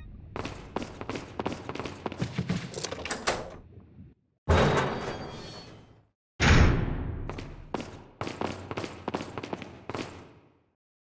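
Footsteps echo on a stone floor.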